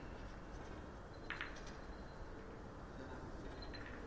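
A snooker ball clicks softly as it is set down on the table.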